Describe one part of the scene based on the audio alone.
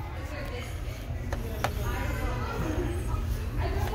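Plastic game cases clack together as one is pulled from a shelf.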